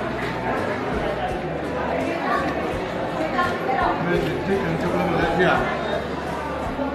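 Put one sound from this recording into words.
Several men talk over each other nearby.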